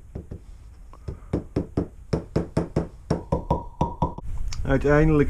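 A small hammer taps lightly and rapidly on wood.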